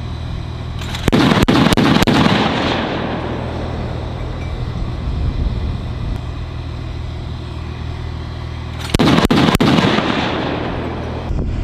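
A missile launches from an armoured vehicle with a loud roaring blast that fades away.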